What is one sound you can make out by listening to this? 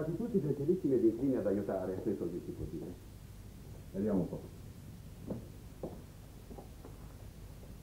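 Footsteps tread across a wooden floor.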